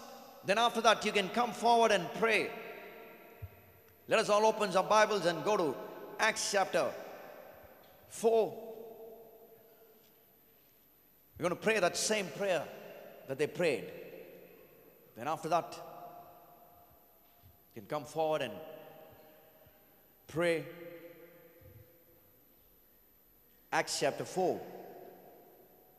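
A man speaks slowly and with feeling into a microphone, in phrases with long pauses, in a reverberant hall.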